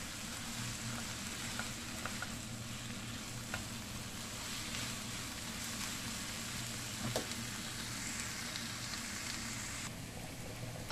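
Bacon and onion sizzle in a frying pan.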